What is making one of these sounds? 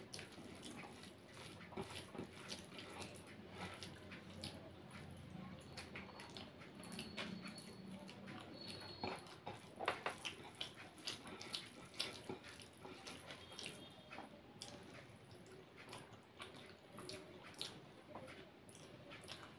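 Fingers squish and mix rice and curry on a plate close by.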